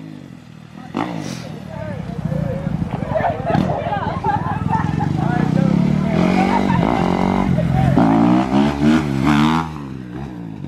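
A dirt bike engine roars and rises in pitch from a distance.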